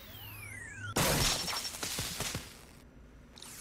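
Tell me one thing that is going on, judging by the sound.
A small explosive charge bursts with a loud blast.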